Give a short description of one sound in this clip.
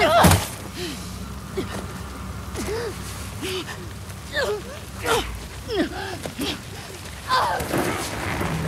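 A young woman gasps and groans in pain close by.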